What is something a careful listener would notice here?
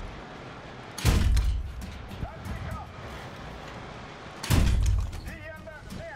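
A tank cannon fires with a deep boom.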